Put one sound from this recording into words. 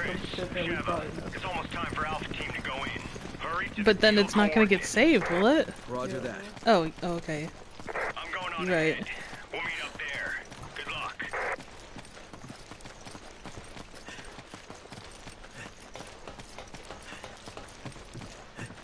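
Footsteps crunch on dirt ground.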